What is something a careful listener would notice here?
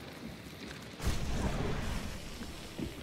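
A shotgun fires a loud blast that echoes.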